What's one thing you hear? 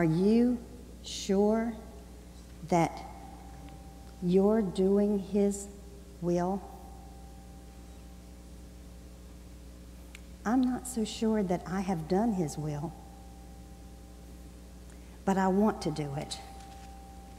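An elderly man speaks slowly and calmly through a microphone, with long pauses, in a large echoing hall.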